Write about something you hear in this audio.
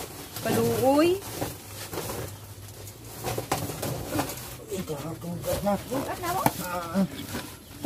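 A plastic sack rustles.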